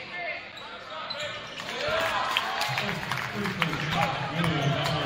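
A crowd murmurs and cheers in a large echoing gym.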